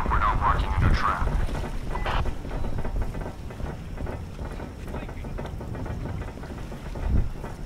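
Boots clank on a metal deck.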